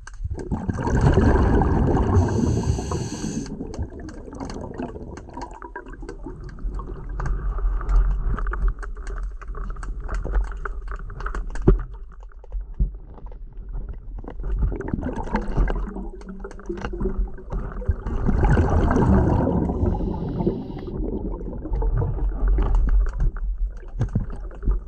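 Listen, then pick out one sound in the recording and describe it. Water rumbles and swishes steadily as a diver swims underwater.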